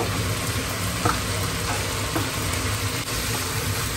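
Food is scraped from a bowl into a pan.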